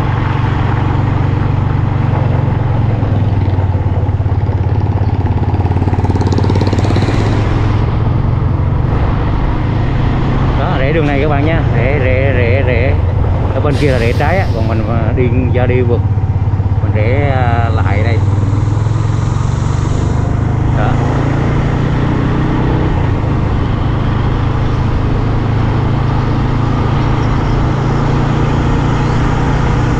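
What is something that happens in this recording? A motorbike engine hums steadily close by.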